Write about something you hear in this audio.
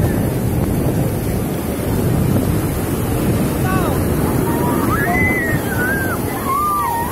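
Shallow surf washes and foams around bare feet.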